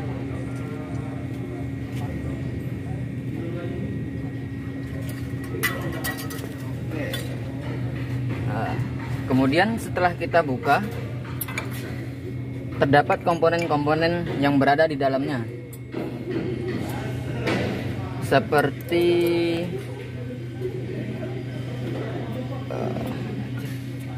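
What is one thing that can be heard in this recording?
Metal parts clink.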